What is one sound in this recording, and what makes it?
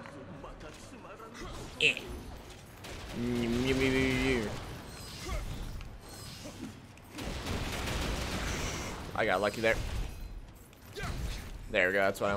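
Blades swing and clash in a fierce fight.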